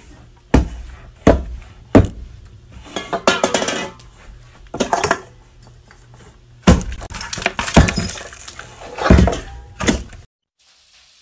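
A can is knocked over and clatters on a hard table.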